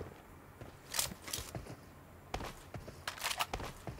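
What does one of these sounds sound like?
Footsteps patter on the ground.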